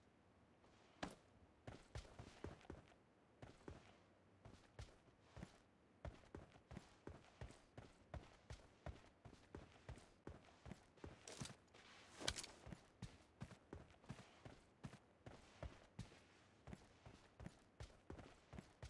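A figure crawls through dry grass with steady rustling steps.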